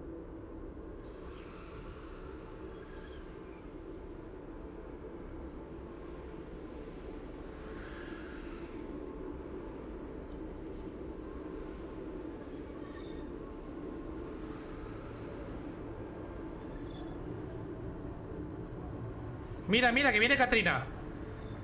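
A young man speaks quietly close to a microphone.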